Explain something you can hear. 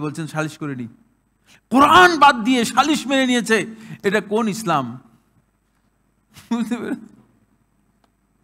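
A man speaks with animation into a microphone, heard close up.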